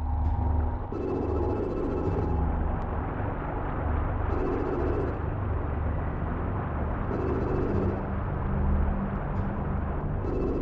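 A small craft's boost jets whoosh in short bursts.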